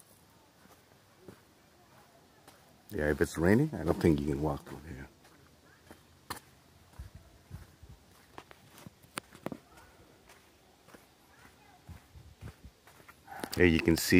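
Footsteps scuff along a dirt path.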